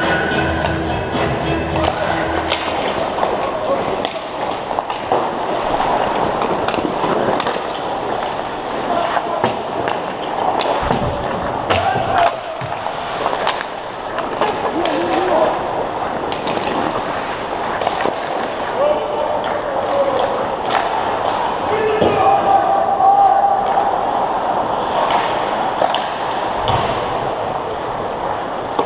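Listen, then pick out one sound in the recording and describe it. Skates scrape and carve across the ice in a large echoing rink.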